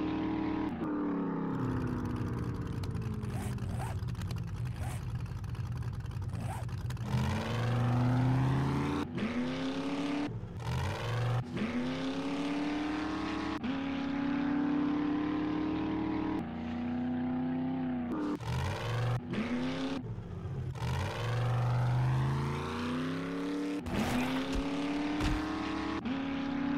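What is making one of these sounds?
A car engine revs up and down repeatedly as the car drives on.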